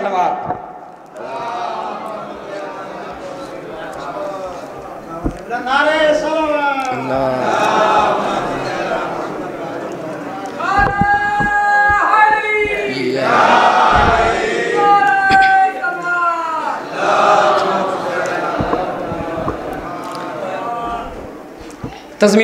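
A group of men sing together in an echoing hall.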